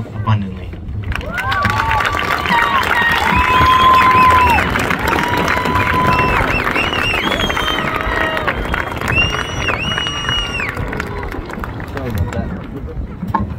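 A crowd of young people cheers, screams and whistles loudly.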